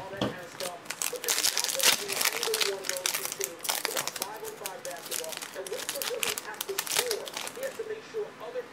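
Foil wrapping crinkles and tears as hands rip open a pack.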